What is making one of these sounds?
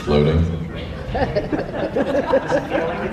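A man sings into a microphone, heard over loudspeakers.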